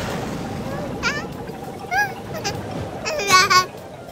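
A baby squeals and babbles excitedly in high-pitched bursts.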